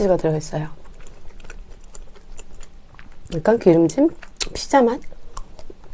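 A young woman speaks softly and playfully close to a microphone.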